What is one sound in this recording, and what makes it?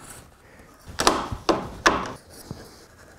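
A clamp clicks as it is tightened.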